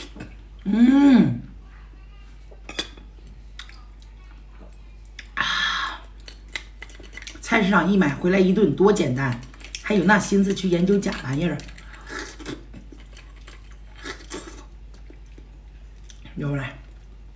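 A young woman chews and slurps food close to a microphone.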